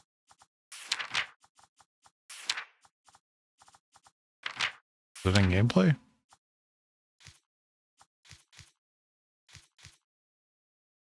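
Soft interface clicks tick as menu options are selected.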